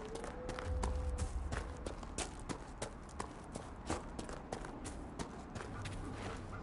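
Footsteps thud steadily on grass and dirt.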